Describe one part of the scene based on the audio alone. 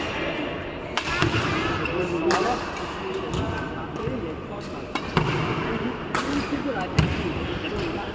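A racket strikes a shuttlecock with sharp pops.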